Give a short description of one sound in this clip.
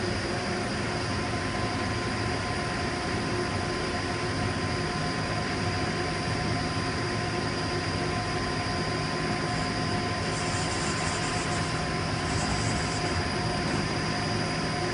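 A machine hums steadily with a whining tone.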